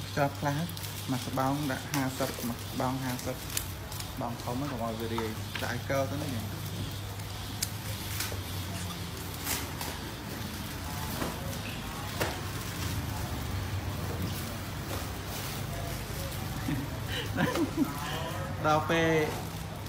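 Plastic packets rustle and crinkle as they are handled.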